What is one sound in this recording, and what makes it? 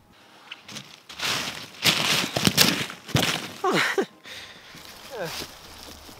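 Dry leaves rustle and crunch close by.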